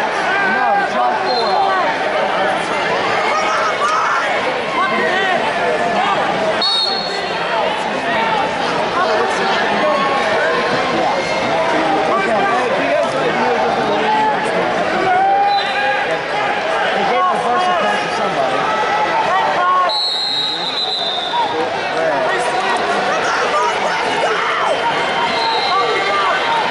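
A crowd of spectators talks and shouts in a large echoing hall.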